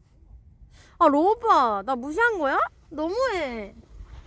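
A young woman speaks nearby in a high, sing-song voice.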